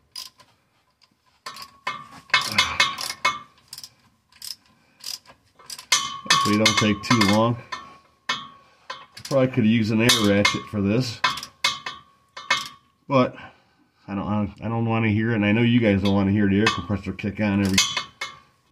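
Metal tools clink and knock against a car's underside.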